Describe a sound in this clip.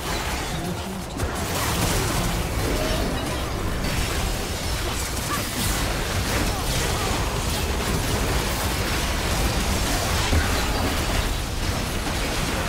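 Spell blasts and impacts crackle and boom in a hectic battle.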